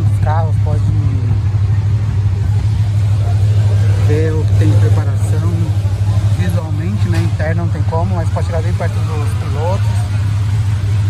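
Men talk casually nearby in the open air.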